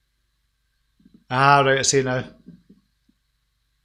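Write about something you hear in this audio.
A middle-aged man speaks briefly and calmly, close to a microphone.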